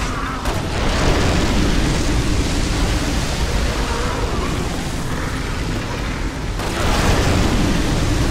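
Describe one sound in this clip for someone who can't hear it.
Flames roar out in loud bursts.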